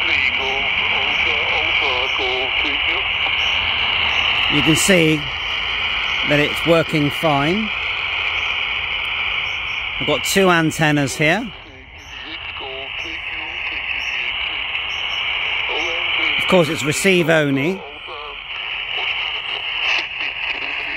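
Radio static hisses steadily.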